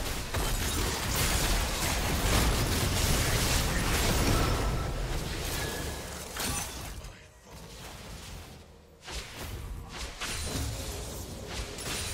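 Magic spells crackle and burst loudly in a video game fight.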